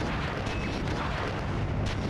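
Shots from a gun crack in quick bursts.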